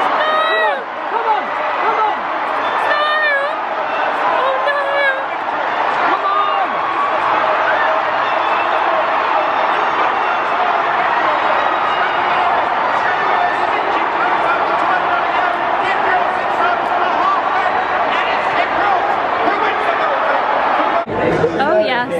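A large crowd cheers and roars outdoors.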